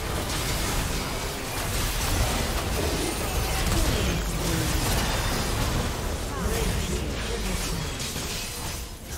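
Game spell effects crackle and burst during a fast battle.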